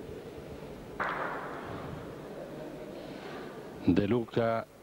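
A crowd claps and cheers in a large echoing hall.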